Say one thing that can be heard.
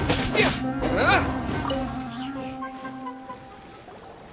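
Loud magic blasts and impacts burst in quick succession, then fade away.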